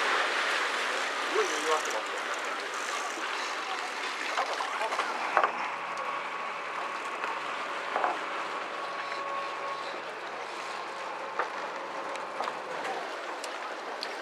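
Water laps against a boat's hull.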